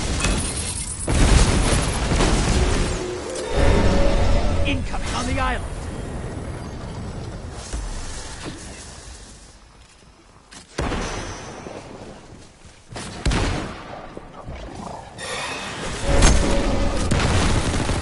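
Heavy blasts boom and crackle.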